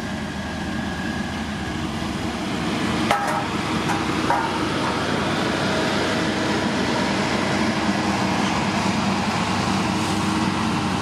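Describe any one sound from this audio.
A heavy diesel engine rumbles steadily as a road grader moves slowly forward.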